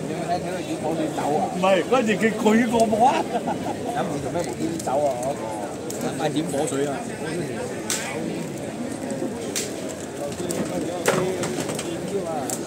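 A crowd of people chatter and call out all around.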